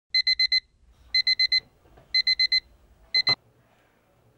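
An alarm clock beeps in quick bursts and then stops.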